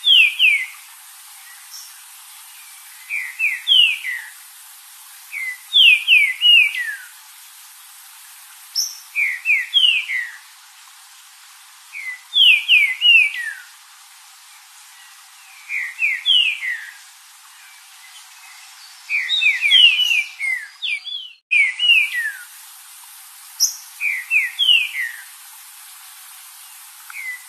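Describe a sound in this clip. A small bird sings short bursts of quick, falling whistles, over and over.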